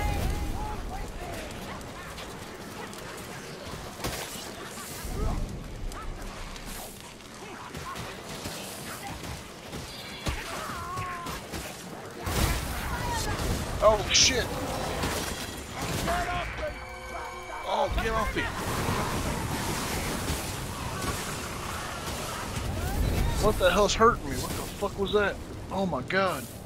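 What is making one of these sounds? Creatures snarl and shriek as they attack.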